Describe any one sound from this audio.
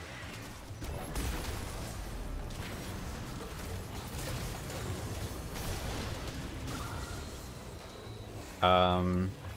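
Game combat effects crackle, whoosh and burst in quick succession.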